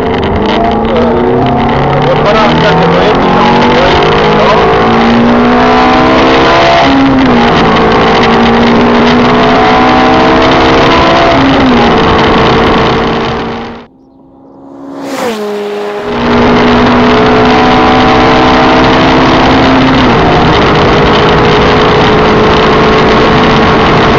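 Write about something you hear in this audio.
A sports car engine roars loudly, revving up through the gears.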